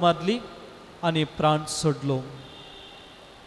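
A young man speaks calmly into a microphone, heard through a loudspeaker in an echoing hall.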